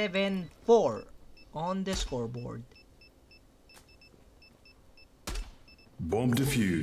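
Keypad buttons beep in quick, even succession.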